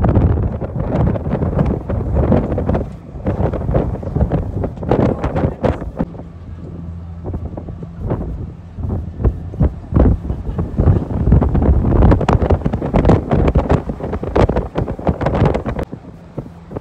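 Wind gusts across an open boat deck and buffets the microphone.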